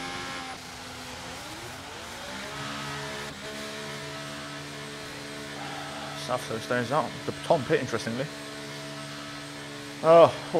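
A racing car engine hums steadily at low speed.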